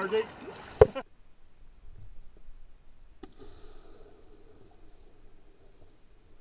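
Water churns and gurgles in a muffled way underwater.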